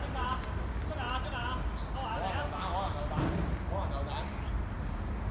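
Young women shout to each other from across an outdoor pitch.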